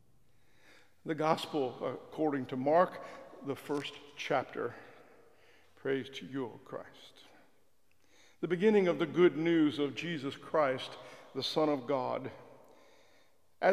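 An elderly man reads aloud calmly into a microphone.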